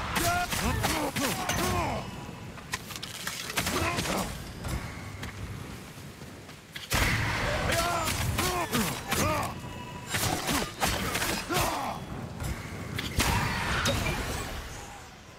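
Steel sword blades clash and ring in a fight.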